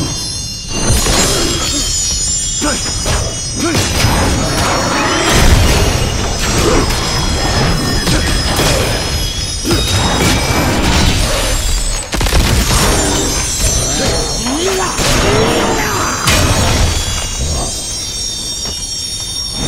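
Blades clash and slash repeatedly with sharp metallic hits.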